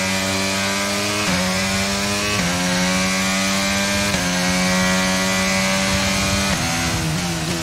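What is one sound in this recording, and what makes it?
A racing car engine screams loudly, climbing in pitch and dropping sharply with each quick gear change.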